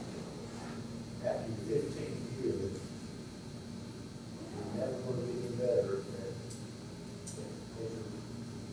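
A middle-aged man speaks at a podium microphone, explaining with animation.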